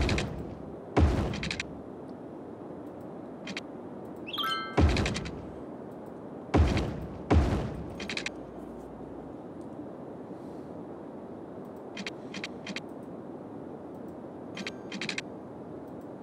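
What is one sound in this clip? Short electronic clicks and chimes sound as roads snap into place.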